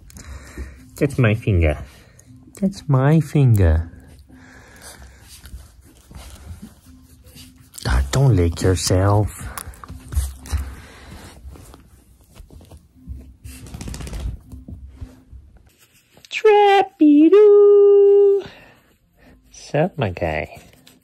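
A dog whines and howls in long rising and falling cries.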